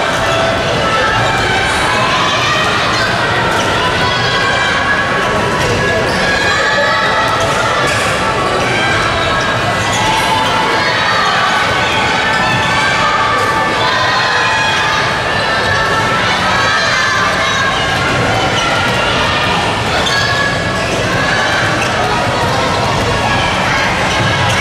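Many children shout and cheer in a large echoing hall.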